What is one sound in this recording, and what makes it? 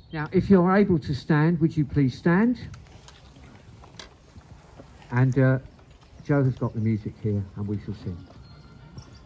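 A woman speaks slowly and solemnly through a loudspeaker outdoors.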